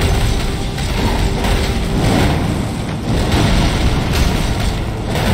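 Heavy weapon blows thud and clang in a fierce fight.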